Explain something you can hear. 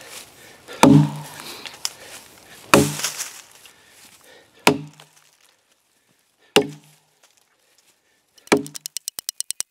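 An axe chops into a log with sharp, heavy thuds.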